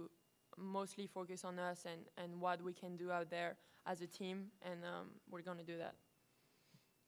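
A young woman speaks calmly into a microphone, close up.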